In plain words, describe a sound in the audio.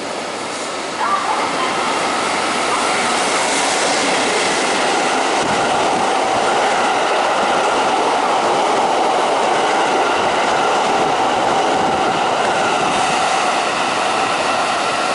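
A train rushes past close by with a loud roar.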